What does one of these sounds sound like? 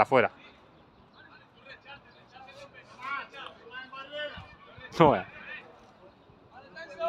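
Football players shout to each other in the distance outdoors.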